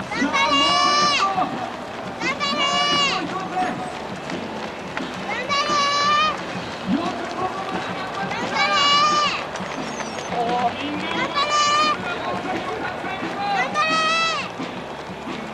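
Many runners' footsteps patter on a paved road.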